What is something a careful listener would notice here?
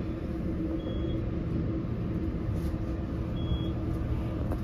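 An elevator chimes with short high beeps.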